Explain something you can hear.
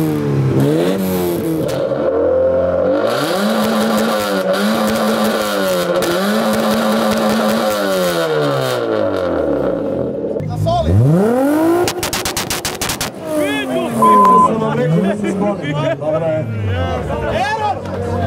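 A car engine revs up and down loudly close by.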